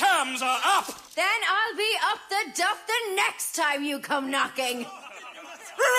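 A young woman speaks defiantly.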